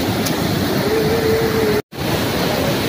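A river rushes loudly nearby.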